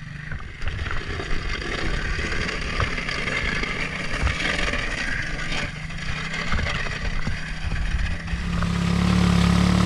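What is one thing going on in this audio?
A snow plow blade scrapes over snow and pavement.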